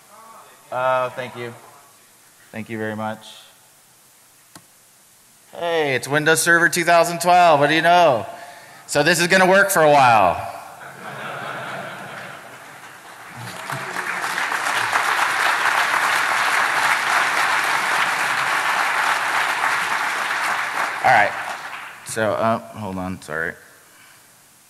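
A man speaks with animation through a microphone in a large room.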